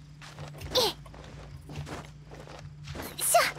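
Hands and feet scuff against a stone wall while climbing.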